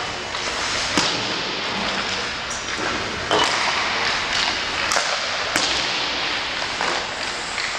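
Ice hockey skates scrape and carve across the ice.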